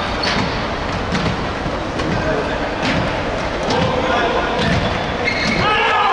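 Sneakers squeak on an indoor court floor in a large echoing hall.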